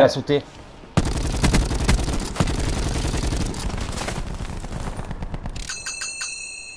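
A heavy machine gun fires a long rapid burst.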